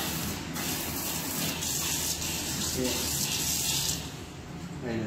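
Water from a tap splashes steadily into a metal sink, then stops.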